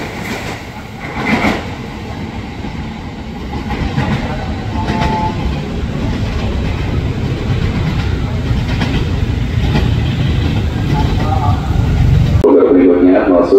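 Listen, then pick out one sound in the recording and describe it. A train rumbles away along the tracks.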